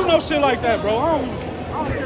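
A bearded man speaks loudly close by.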